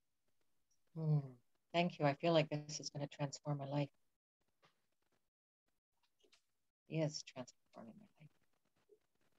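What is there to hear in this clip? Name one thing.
A woman talks with animation over an online call.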